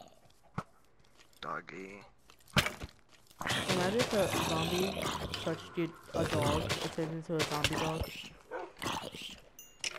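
A zombie groans low and hoarse.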